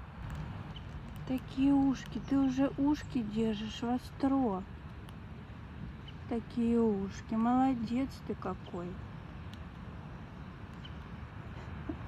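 A squirrel nibbles and gnaws a nut up close.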